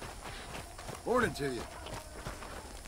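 A man calls out a greeting.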